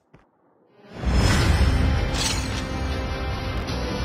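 Triumphant music swells and plays on.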